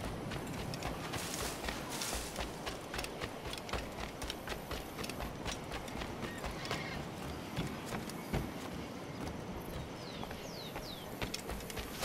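Footsteps run quickly over grass and sand.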